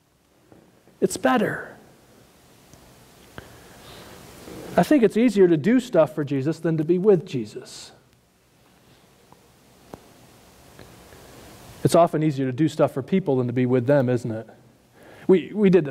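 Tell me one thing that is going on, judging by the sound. A man speaks calmly into a microphone, heard through loudspeakers in a large echoing hall.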